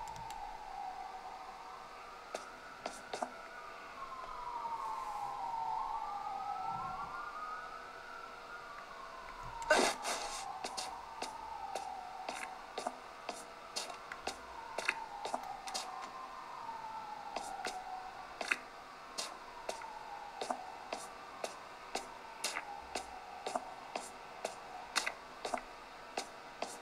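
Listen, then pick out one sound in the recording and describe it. Game music and sound effects play from a handheld console's small speakers.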